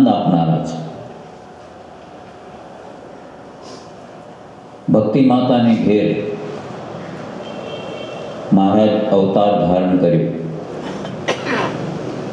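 An elderly man chants through a microphone, his voice ringing in a reverberant space.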